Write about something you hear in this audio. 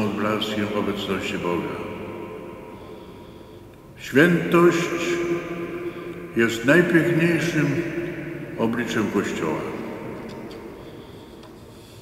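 An elderly man chants slowly through a microphone, echoing in a large hall.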